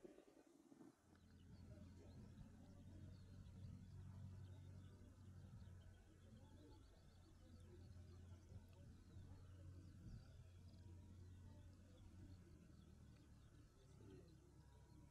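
A small propeller plane's engine drones steadily at a distance.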